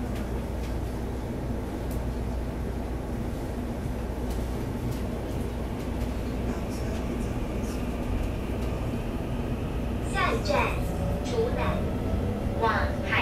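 An electric multiple-unit train rumbles along the rails, heard from inside the carriage.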